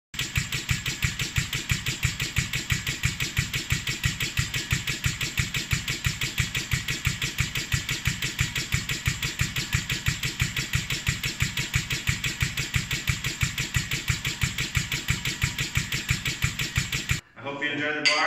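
A testing machine pumps in a fast, steady rhythm of hissing thumps.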